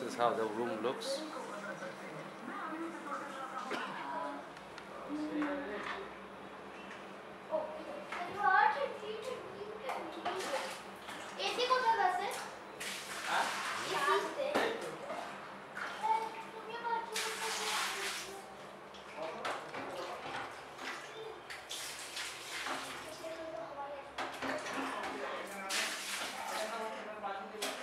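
A boy talks with animation close by.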